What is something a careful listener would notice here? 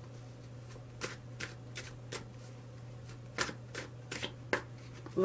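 Playing cards click and tap as they are handled.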